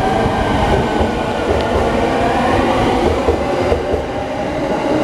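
Train brakes squeal with a high, wavering whine.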